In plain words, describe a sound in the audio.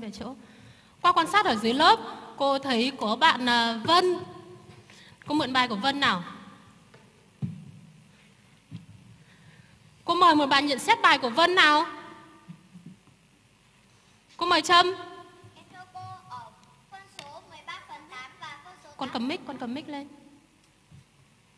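A young woman speaks with animation through a microphone in a large echoing hall.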